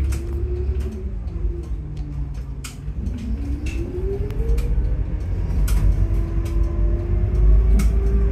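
Loose parts rattle and click inside a moving bus.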